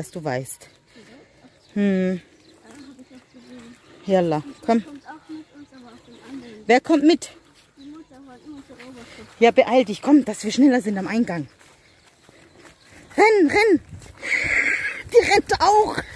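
A young girl talks and sings nearby.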